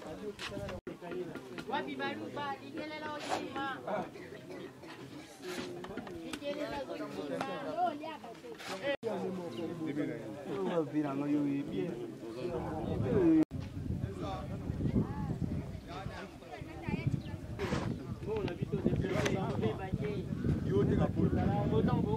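Several men talk among themselves outdoors.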